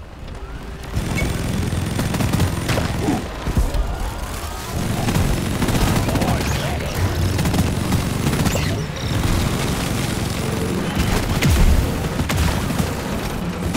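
A game's heavy gun fires in rapid bursts.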